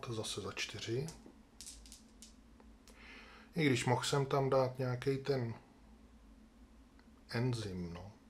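Dice click as a hand picks them up.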